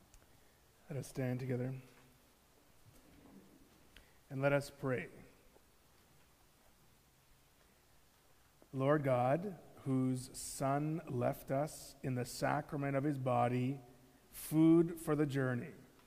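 A man reads aloud through a microphone in an echoing hall.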